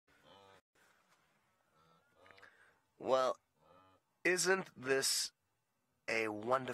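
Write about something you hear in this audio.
A herd of wildebeest grunts and moans nearby.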